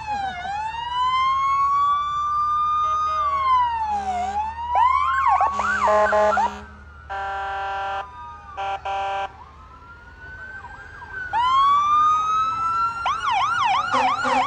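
Emergency sirens wail and yelp loudly.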